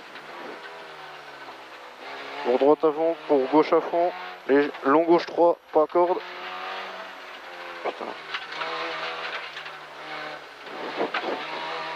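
A rally car engine roars and revs hard, rising and falling with gear changes.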